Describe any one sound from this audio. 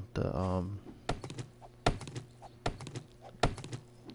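An axe chops into a tree trunk with dull knocks.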